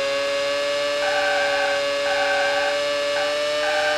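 Tyres screech in short bursts through a corner.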